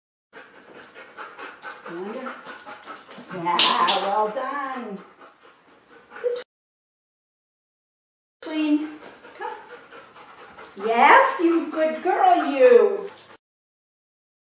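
A woman speaks cheerfully to a dog nearby.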